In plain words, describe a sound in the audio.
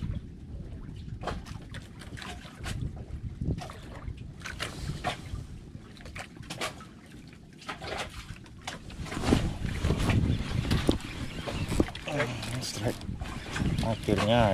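Wind blusters past outdoors on open water.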